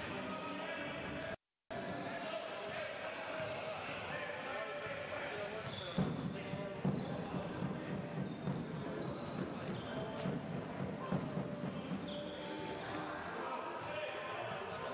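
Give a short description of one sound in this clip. Basketball players' shoes squeak on a hard court in a large echoing hall.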